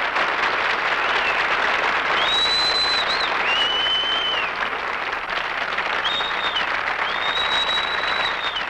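People in a crowd whistle shrilly.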